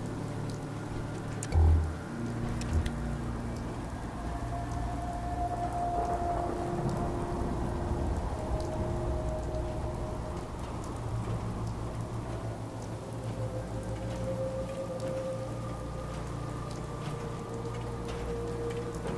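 Heavy metal footsteps clank on the ground.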